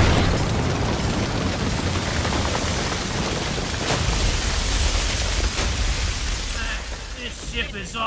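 A huge creature crashes through walls with a deep, roaring rumble.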